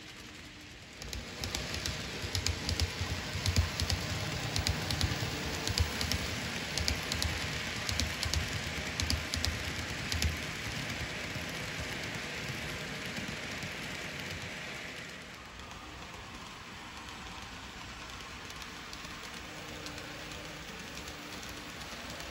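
A small model train rumbles and clicks along its track close by.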